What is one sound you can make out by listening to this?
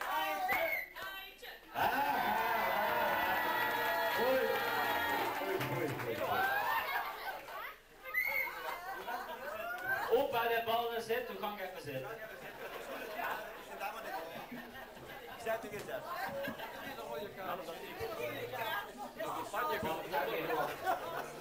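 A crowd of men and women chatters in a large room.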